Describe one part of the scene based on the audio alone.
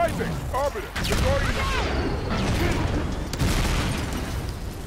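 A loud blast rumbles and roars.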